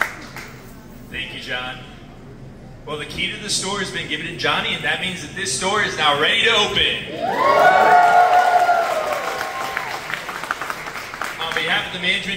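A man speaks with animation through a microphone and loudspeaker.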